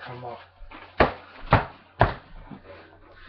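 A box strikes a body with a hollow knock.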